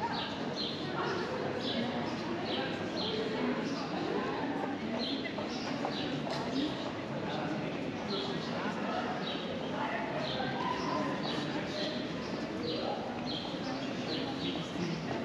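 Men and women chatter at a distance outdoors.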